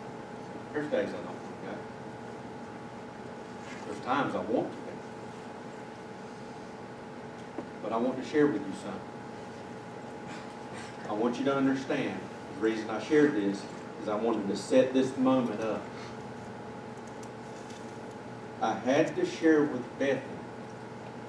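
A man speaks calmly and slowly in a small echoing room, with pauses between phrases.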